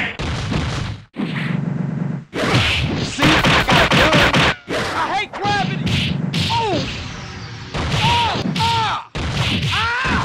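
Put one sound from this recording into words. Rapid punches and hits land with sharp thuds.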